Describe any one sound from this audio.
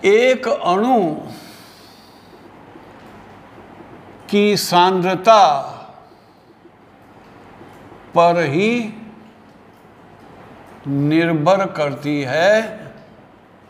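An elderly man speaks calmly in short phrases, close by.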